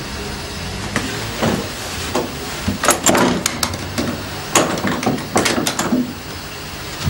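Something knocks and rattles against a pipe close by.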